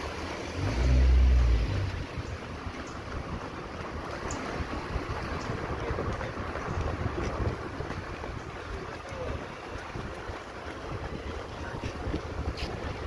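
Footsteps slap quickly on pavement as runners jog.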